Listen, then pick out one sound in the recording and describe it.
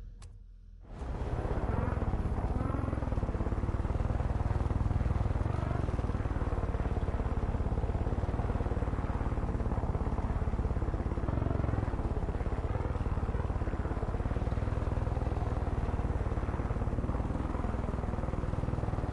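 A helicopter's rotor chops loudly and steadily close by.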